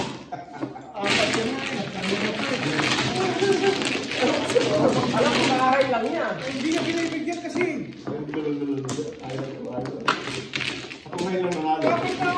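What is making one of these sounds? Plastic tiles clatter and rattle as hands shuffle them on a table.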